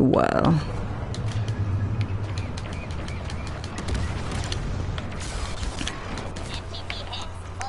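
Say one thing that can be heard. Laser blasts fire in rapid bursts.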